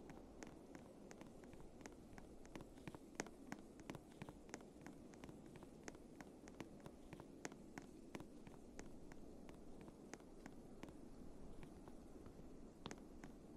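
Footsteps crunch on snow at a steady pace.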